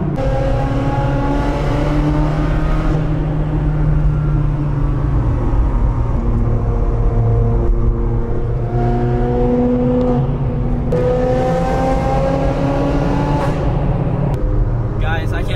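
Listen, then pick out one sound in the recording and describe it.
A car engine roars loudly and revs up and down inside an echoing tunnel.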